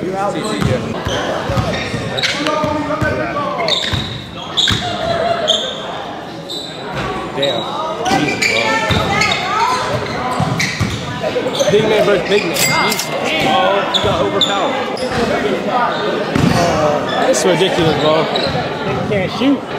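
A basketball bounces on a gym floor.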